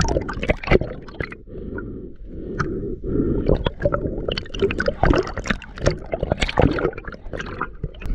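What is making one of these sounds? Air bubbles rise and crackle underwater.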